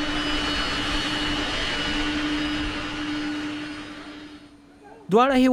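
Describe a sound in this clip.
A jet engine hums steadily outdoors.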